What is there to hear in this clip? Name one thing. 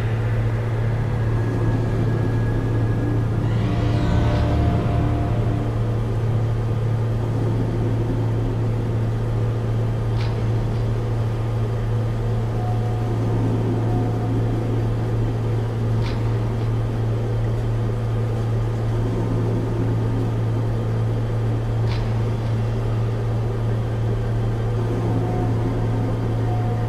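A small plane's propeller engine drones steadily from inside the cockpit.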